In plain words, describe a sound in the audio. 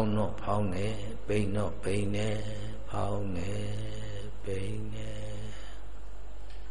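An elderly man chants slowly into a microphone, heard through a loudspeaker.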